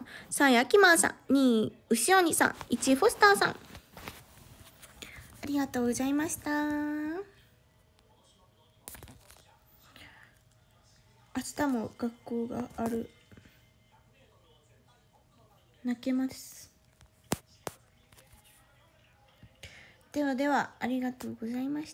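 A young woman speaks softly and playfully close to a phone microphone, in bursts with pauses.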